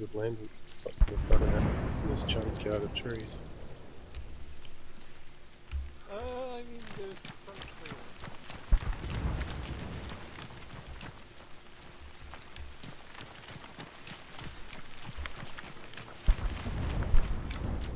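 Footsteps crunch on dirt and grass.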